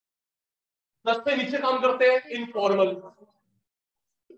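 A man speaks clearly into a clip-on microphone.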